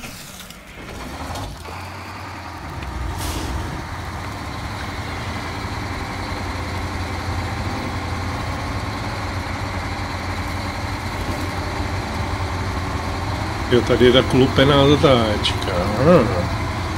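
A heavy truck engine rumbles steadily as the truck crawls over rough ground.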